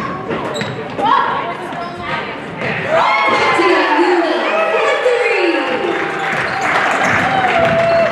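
Sneakers squeak sharply on a hard court in an echoing gym.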